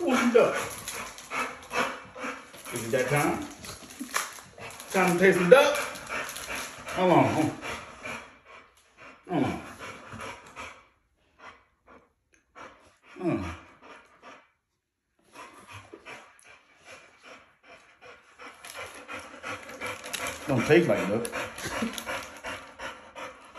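A cardboard box rustles as it is opened.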